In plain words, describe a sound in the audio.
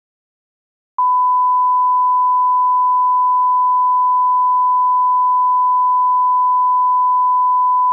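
A steady, high-pitched test tone sounds without a break.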